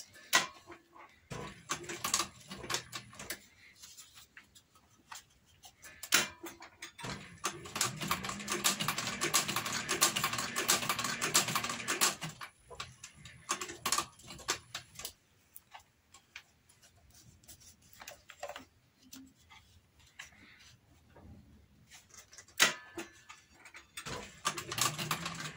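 A sewing machine stitches leather in quick bursts.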